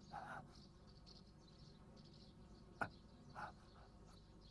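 A man groans softly in pain close by.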